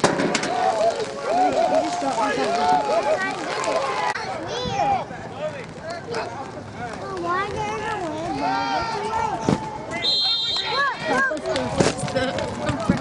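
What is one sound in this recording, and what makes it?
Spectators shout and cheer close by, outdoors.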